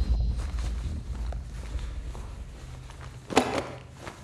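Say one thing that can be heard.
Footsteps fall slowly on a wooden floor.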